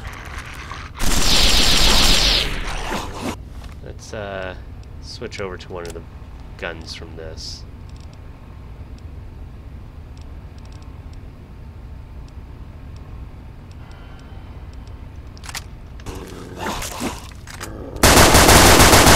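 A gun fires a rapid burst of shots.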